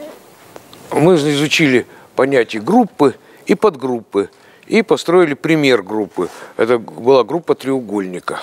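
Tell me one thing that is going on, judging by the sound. An elderly man speaks calmly and clearly into a microphone in an echoing room.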